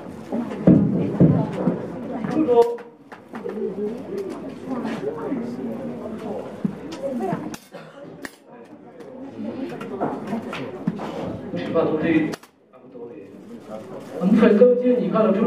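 A young man talks into a microphone over loudspeakers.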